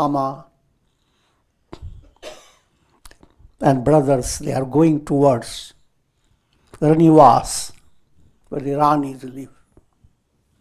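An elderly man reads aloud calmly through a clip-on microphone.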